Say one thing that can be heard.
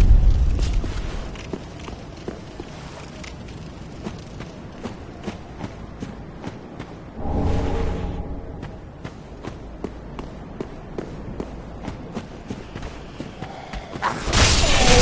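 Footsteps crunch steadily on stone and gravel.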